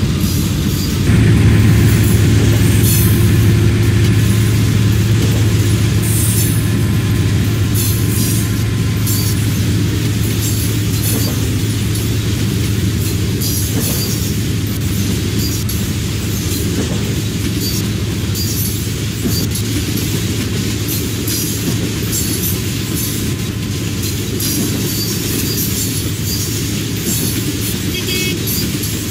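A freight train rumbles past close by, its wheels clacking over the rails.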